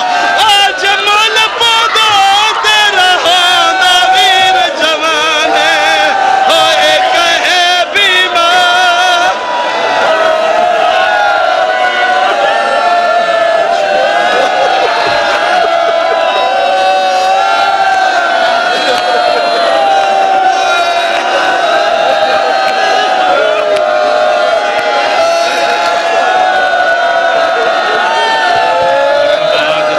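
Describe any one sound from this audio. A crowd of men chants loudly in unison.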